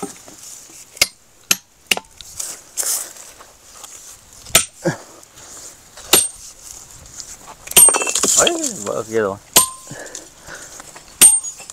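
A metal tool strikes rock with sharp clanks.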